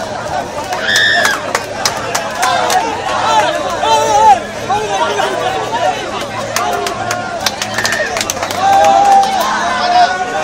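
A large outdoor crowd of men shouts and cheers loudly.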